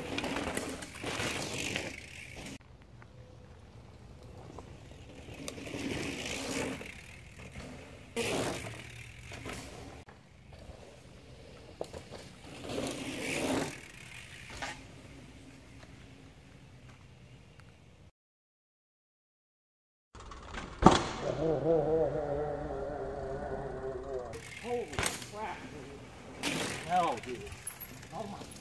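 Bicycle tyres crunch over a dirt trail.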